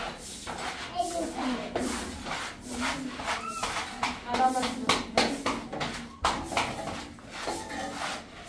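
A broom sweeps a gritty floor.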